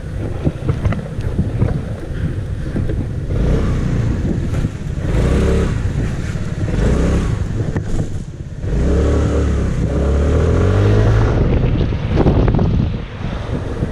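A scooter engine hums and revs as it rides along.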